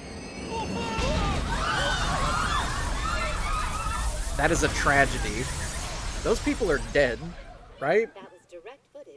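A train derails with a loud crashing roar and rumble.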